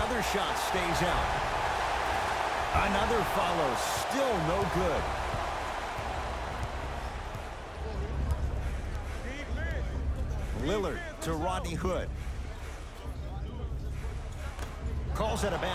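A crowd cheers and roars loudly in a large arena.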